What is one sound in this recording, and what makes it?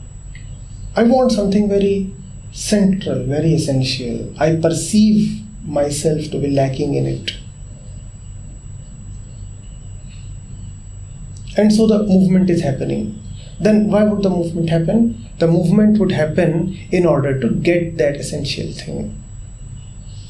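A man speaks calmly and thoughtfully, close to a microphone.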